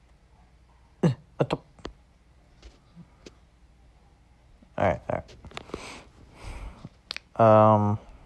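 Game bubbles pop in quick bursts.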